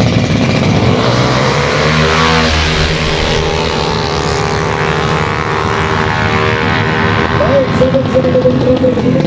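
Racing motorcycle engines rev loudly and roar away.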